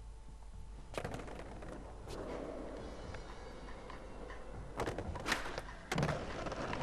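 Skateboard wheels roll and rumble over rough paving.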